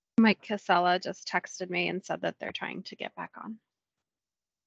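A woman speaks calmly over an online call.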